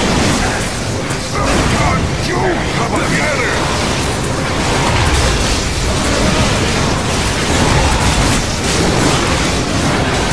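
Blades slash and strike in a fast fight.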